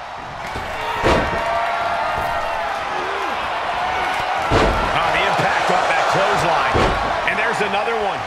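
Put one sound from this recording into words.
A heavy body slams down onto a wrestling mat with a loud thud.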